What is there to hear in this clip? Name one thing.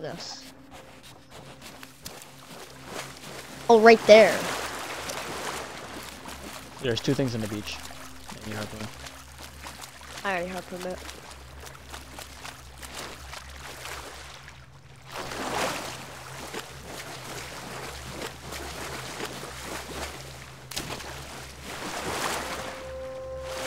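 Water splashes gently as a swimmer moves through the sea.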